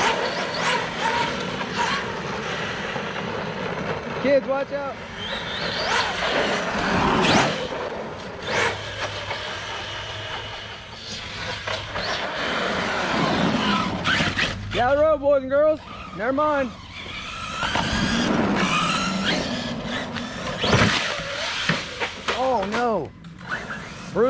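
A small electric motor whines and revs up and down.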